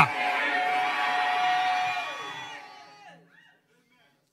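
A crowd sings and cries out together.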